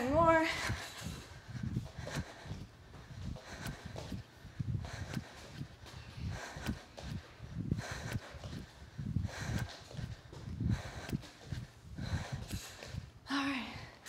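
Bare feet land with thuds on a wooden floor during jump squats.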